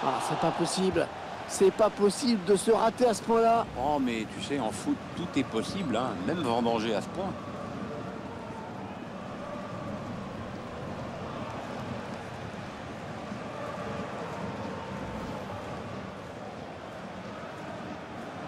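A stadium crowd murmurs and cheers steadily in a large open space.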